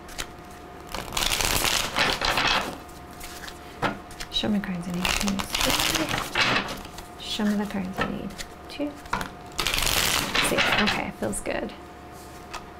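Cards shuffle and riffle with a brisk rustle.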